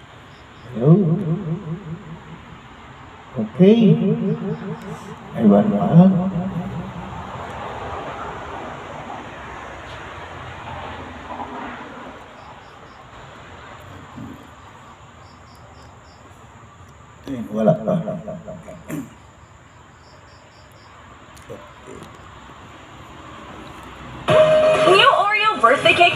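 An elderly man sings loudly through a microphone and loudspeaker, in short phrases.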